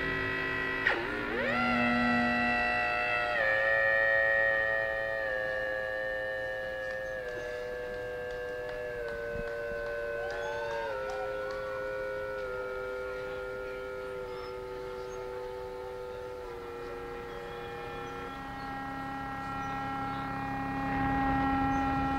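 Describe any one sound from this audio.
An electric guitar plays long, sustained notes that slowly shift in pitch.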